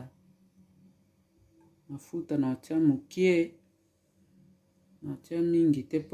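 Oil trickles into a frying pan.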